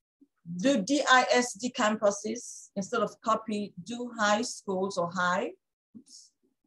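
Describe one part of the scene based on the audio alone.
A woman speaks calmly and close into a microphone.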